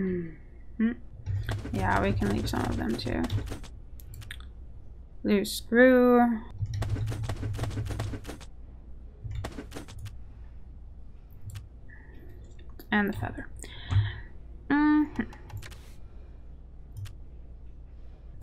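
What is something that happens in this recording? Soft menu clicks tick as a selection moves between items.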